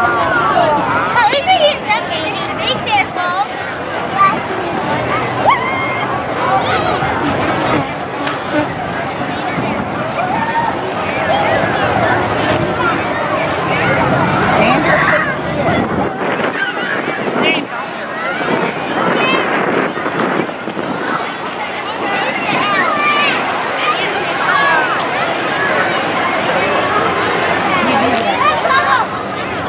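A crowd of adults and children chatters outdoors nearby.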